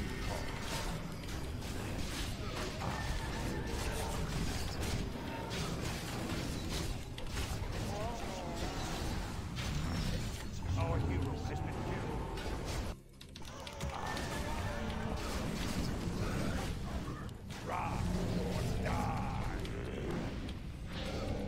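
Game battle sounds clash and burst with spells and weapon hits.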